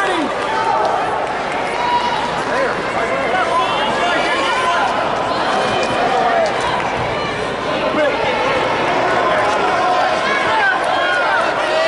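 A large crowd murmurs and shouts in an echoing hall.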